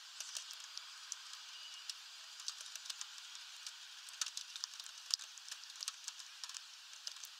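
A small bird pecks at seeds with quick, sharp clicks.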